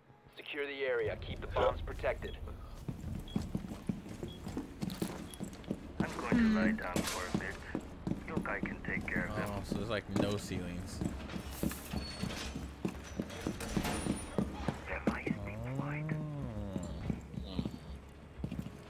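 Footsteps thud on wooden floors.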